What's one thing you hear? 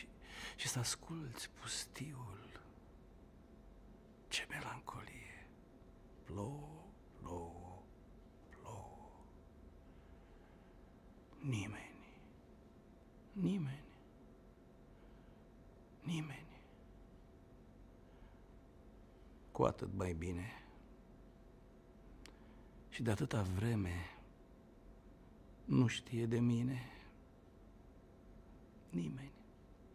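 A middle-aged man speaks calmly and close to a microphone, in short phrases with long pauses.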